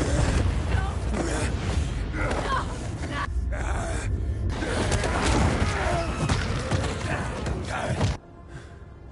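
A man roars in agony.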